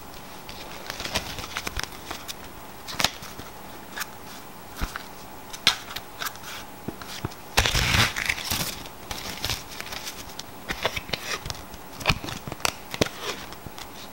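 Playing cards flick, tap and riffle between hands.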